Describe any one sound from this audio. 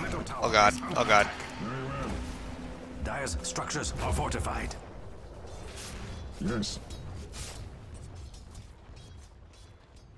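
Fantasy game battle effects whoosh and crackle in short bursts.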